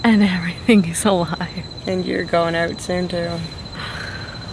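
A second young woman laughs close by.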